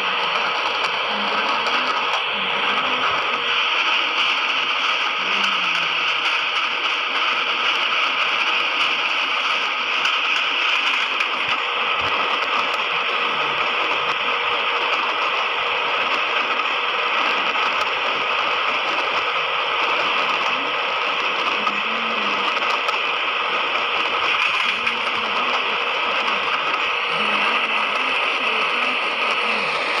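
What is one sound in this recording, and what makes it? A train rolls steadily along the rails with a constant rumble.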